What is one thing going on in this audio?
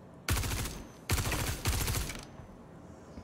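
A rifle fires a quick burst of loud shots.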